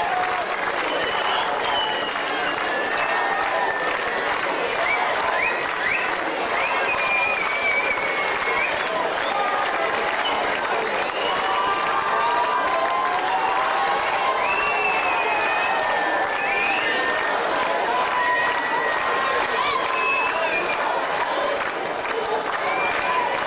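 A brass band plays loudly outdoors.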